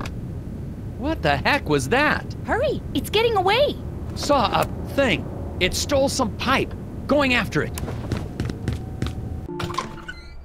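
A man talks in a high, warbling cartoon voice.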